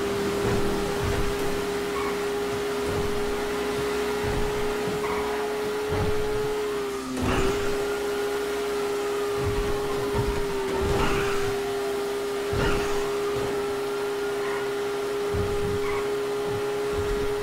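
A car engine hums steadily at high revs.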